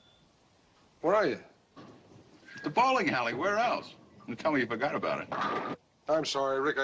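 A young man speaks over a telephone line.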